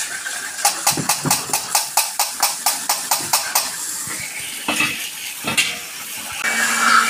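A pressure washer sprays water against metal in rapid pulses.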